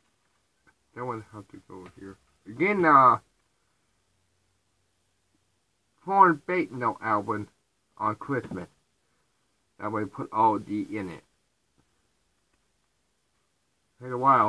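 A young man talks calmly and close by, in short bursts with pauses.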